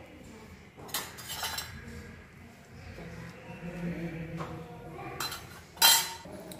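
A metal spoon scrapes and clinks against a pan.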